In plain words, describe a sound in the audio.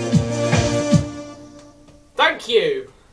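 An electronic keyboard plays a chord that rings out and fades.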